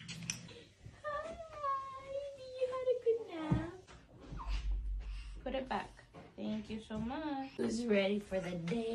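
A woman talks in a sing-song voice to a baby close by.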